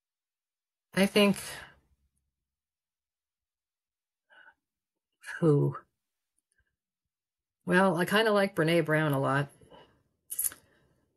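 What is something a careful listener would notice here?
A middle-aged woman speaks calmly and thoughtfully into a microphone close by, with long pauses.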